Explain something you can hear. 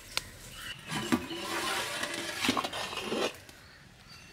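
Steam hisses from a pot.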